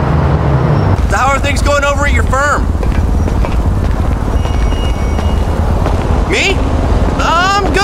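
A man talks calmly on a phone.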